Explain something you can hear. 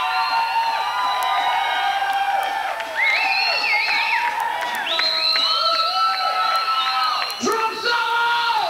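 Electric guitars play loudly through amplifiers with wailing, bending notes.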